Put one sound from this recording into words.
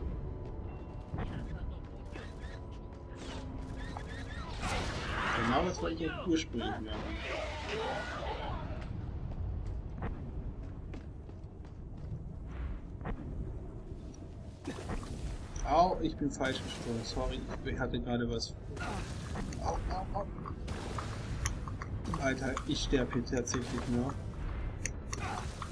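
A lightsaber hums and swooshes as it swings.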